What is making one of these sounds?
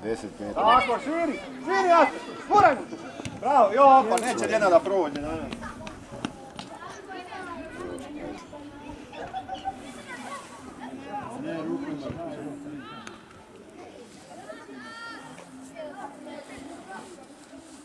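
Young players call out to each other across an open field in the distance.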